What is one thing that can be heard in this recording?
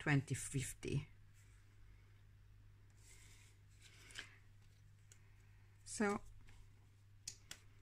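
A glossy magazine page rustles and crinkles as it is handled.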